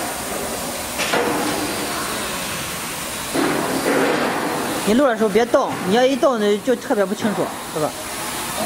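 A cutting torch hisses steadily as it cuts through sheet metal.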